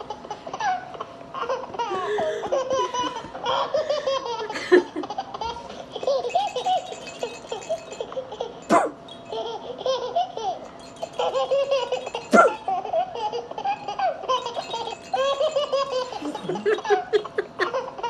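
A woman laughs loudly.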